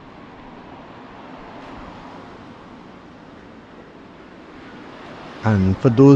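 A car drives slowly past on the street.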